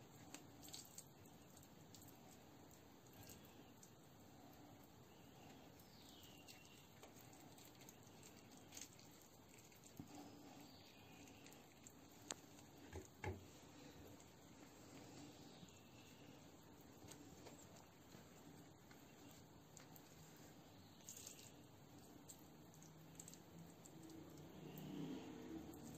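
Hands squish and press a moist, grainy filling.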